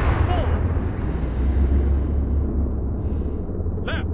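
A distant explosion booms and rumbles away.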